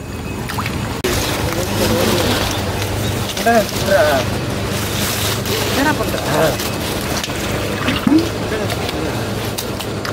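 Hands squelch and splash in wet mud.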